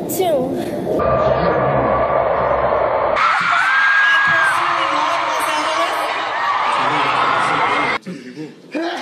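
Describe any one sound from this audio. A large crowd cheers and screams in a big echoing hall.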